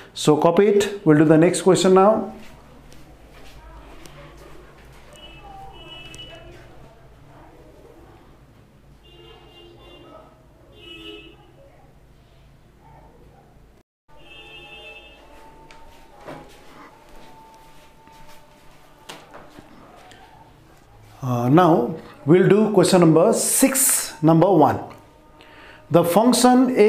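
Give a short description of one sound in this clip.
A middle-aged man speaks clearly and calmly, as if teaching, close to a microphone.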